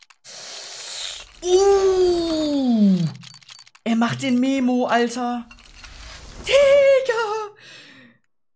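A young man exclaims loudly with rising and falling pitch.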